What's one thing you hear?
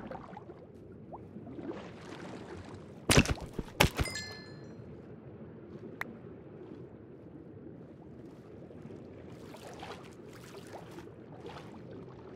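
Water murmurs in a low, steady underwater rumble.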